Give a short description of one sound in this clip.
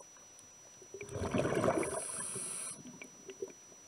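Air bubbles rush and gurgle underwater.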